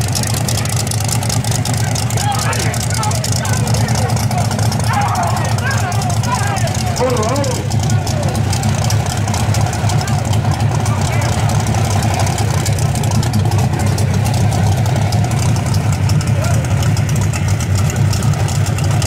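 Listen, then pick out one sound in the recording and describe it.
A car engine idles with a deep, loud rumble close by.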